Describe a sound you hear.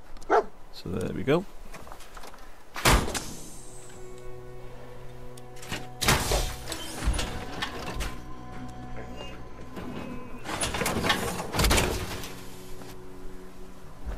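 Heavy metal armor clanks and whirs as it opens and closes.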